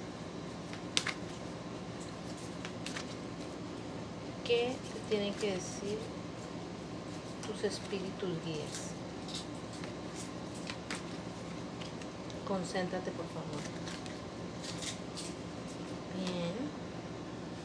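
Playing cards riffle and snap as hands shuffle them.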